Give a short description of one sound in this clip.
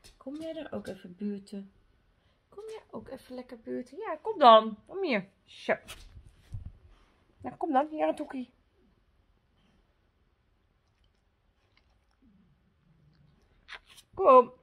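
A young woman talks close by in a high, playful voice.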